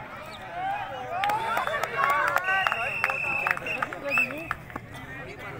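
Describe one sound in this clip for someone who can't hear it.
A crowd of men cheers loudly.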